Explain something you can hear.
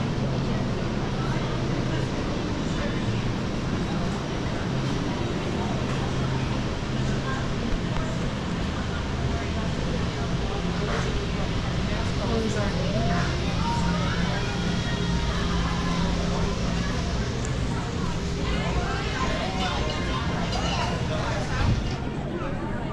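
A steady low hum of machinery fills a large indoor space.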